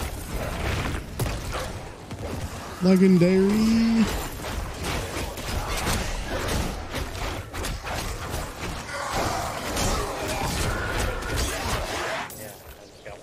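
Weapons slash and clash in rapid hits and thuds.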